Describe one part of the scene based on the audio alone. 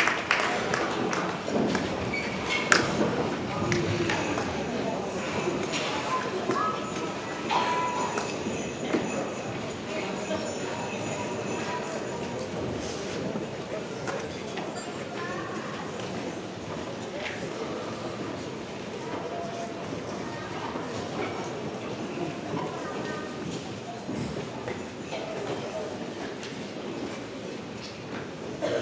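A big band plays brass and drums in a large hall.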